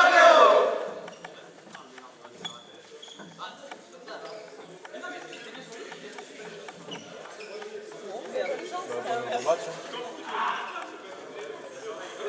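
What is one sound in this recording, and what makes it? Young men chatter and call out across a large echoing hall.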